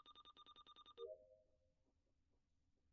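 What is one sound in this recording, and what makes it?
A game chime sounds as a task completes.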